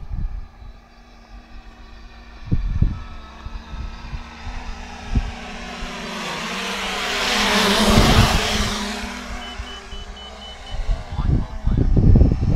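A drone's rotors whir overhead, swelling loudly as it sweeps close past.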